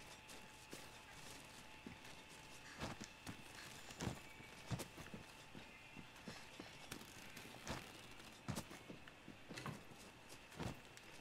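Heavy steps thud and scrape at an uneven pace.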